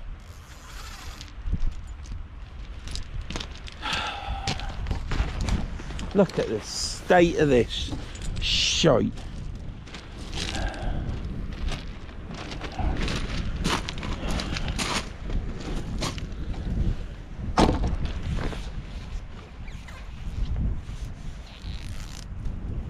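A waterproof jacket rustles close by.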